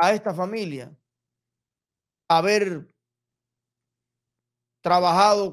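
A young man speaks expressively into a close microphone, in short bursts with pauses.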